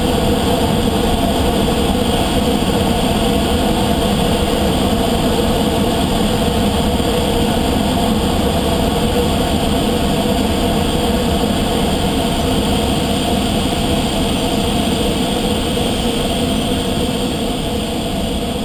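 Air rushes loudly and steadily past a glider's canopy.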